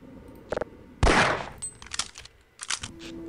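A gun clicks and rattles as it is drawn.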